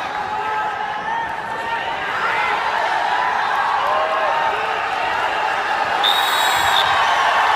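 A crowd in a large echoing hall cheers and shouts steadily.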